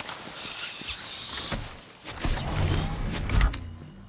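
A metal chest clanks open.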